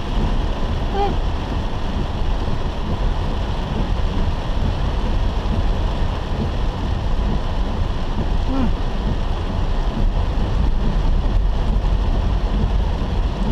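Heavy rain drums steadily on a car's roof and windscreen.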